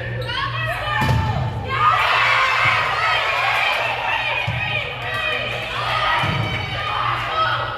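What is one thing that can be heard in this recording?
A volleyball is struck with a sharp smack in an echoing gym.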